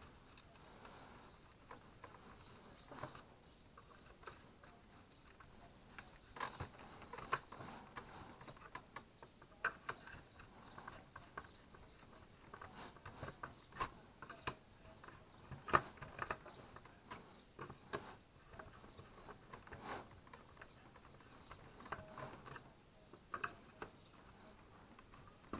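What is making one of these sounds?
A screwdriver scrapes and clicks against a plastic case.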